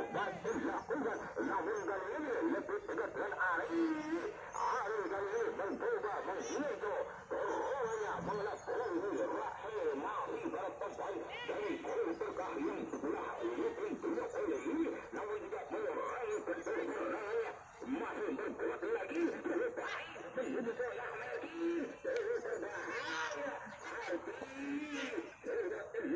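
Young men shout to each other while playing football.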